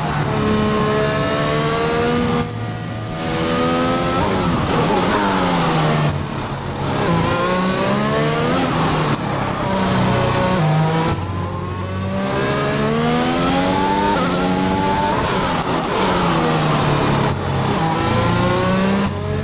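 A racing car engine screams, rising in pitch and dropping sharply with each gear change.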